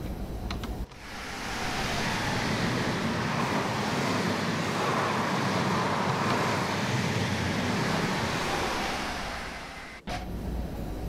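A passenger train rushes past with a loud rushing roar.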